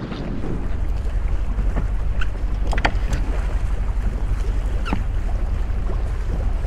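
Water rushes along the hull of a moving boat.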